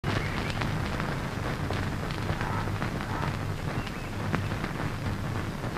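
Newspaper pages rustle.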